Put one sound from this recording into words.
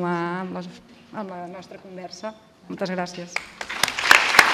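A woman speaks into a microphone.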